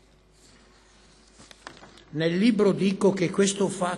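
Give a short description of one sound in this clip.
Paper rustles near a microphone.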